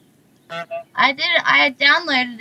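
A young woman talks animatedly into a microphone.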